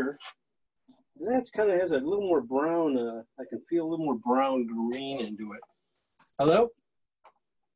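A middle-aged man talks calmly and close to a microphone.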